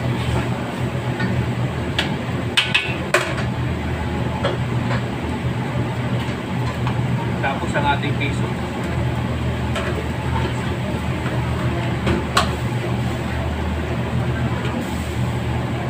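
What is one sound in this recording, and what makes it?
A metal spatula scrapes and clanks against a wok.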